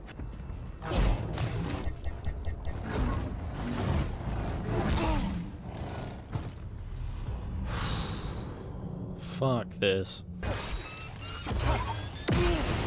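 Lightsabers hum and clash in a game fight.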